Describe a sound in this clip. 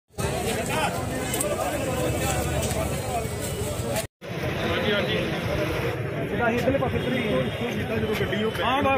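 A crowd of men talk over each other nearby.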